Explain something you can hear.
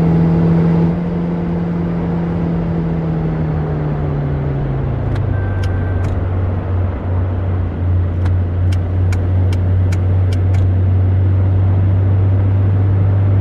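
Road noise rushes steadily under tyres.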